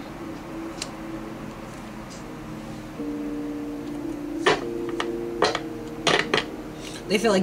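Cards tap and slide on a table.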